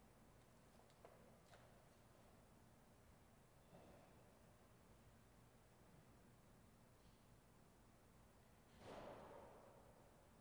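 Small objects knock softly on a table, echoing in a large hall.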